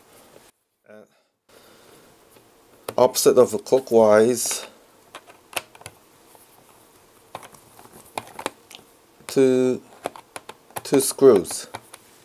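A screwdriver turns small screws with faint clicks and scrapes.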